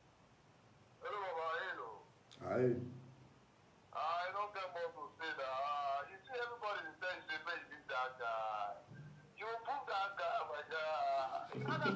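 A young man sings close by.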